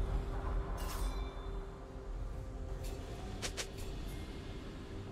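Game spell effects zap and crackle in short bursts.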